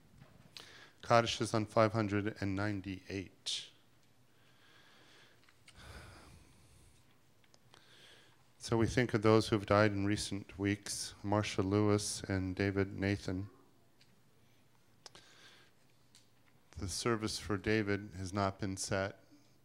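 A man chants through a microphone in a large echoing hall.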